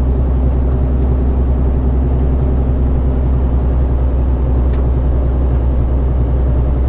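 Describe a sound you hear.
Tyres rumble over a rough track.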